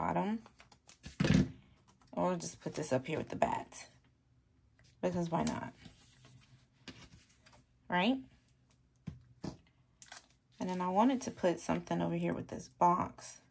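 Paper rustles softly as stickers are peeled and pressed down.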